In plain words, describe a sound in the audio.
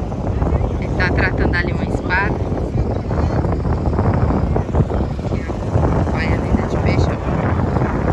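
Several adults chatter nearby.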